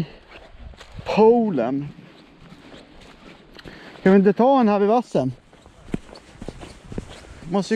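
Footsteps crunch on rock and dry grass.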